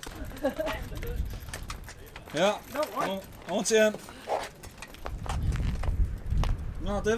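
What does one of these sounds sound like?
Bicycle wheels tick as bicycles are pushed along.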